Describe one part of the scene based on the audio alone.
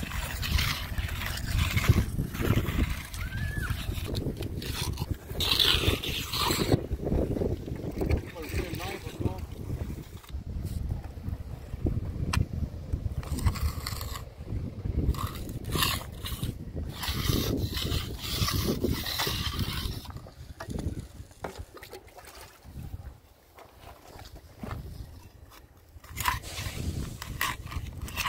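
A trowel scrapes across wet concrete.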